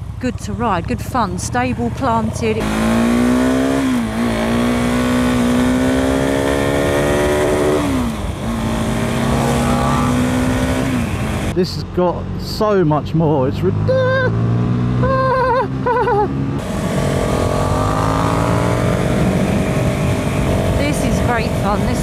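A motorcycle engine revs hard, rising and dropping in pitch as it shifts gears.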